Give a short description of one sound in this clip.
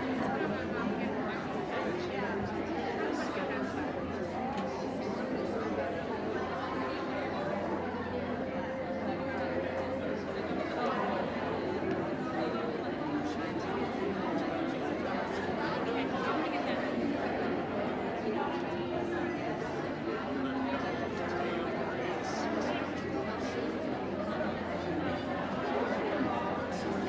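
Music plays over loudspeakers.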